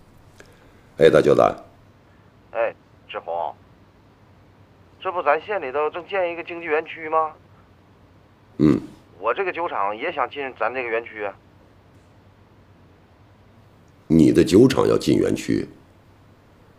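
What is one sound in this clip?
A man speaks calmly into a phone close by.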